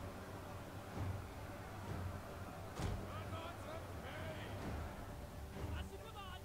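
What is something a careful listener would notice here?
Dull thuds of impacts sound now and then.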